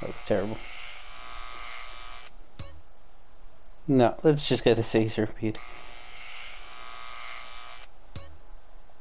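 Buzzing hair clippers run.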